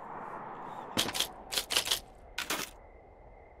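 Typewriter keys clack sharply a few times.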